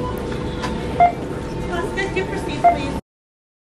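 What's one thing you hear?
A checkout scanner beeps.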